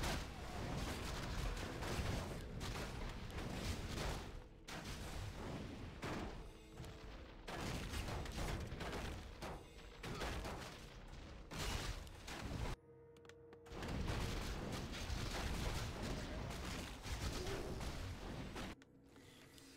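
Weapons clash and spells crackle in a busy battle.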